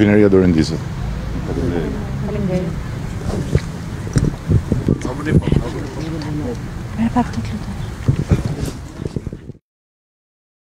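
A small crowd of people murmurs and calls out nearby.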